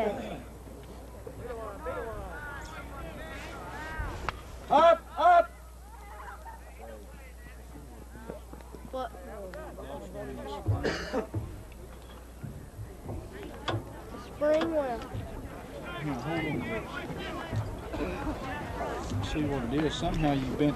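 Men chatter and call out at a distance outdoors.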